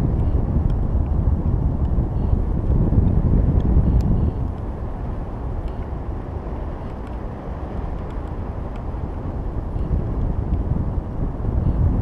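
Wind buffets and rumbles loudly against a microphone, easing off partway through.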